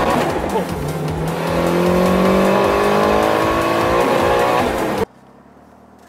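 A car engine revs loudly from inside the car.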